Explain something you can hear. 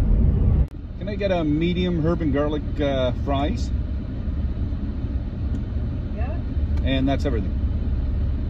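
A middle-aged man talks calmly inside a car.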